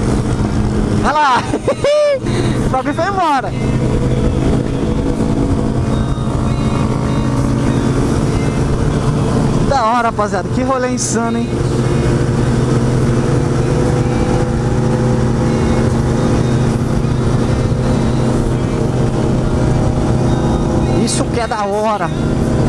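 Motorcycle engines rev up sharply in quick bursts.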